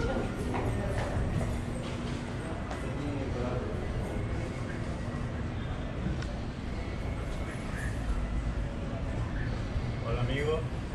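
Men and women talk nearby in a lively murmur.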